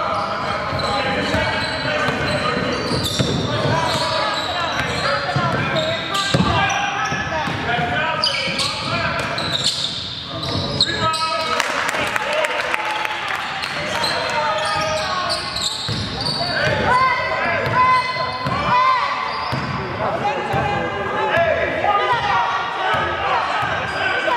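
A crowd of spectators talks and calls out nearby.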